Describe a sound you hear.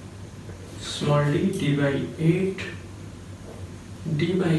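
A man speaks calmly, explaining, close by.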